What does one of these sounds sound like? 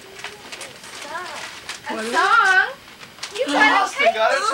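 A woman speaks to a small child in a bright, animated voice close by.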